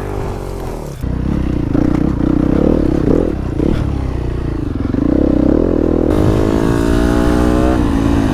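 A four-stroke enduro motorcycle engine pulls along at speed.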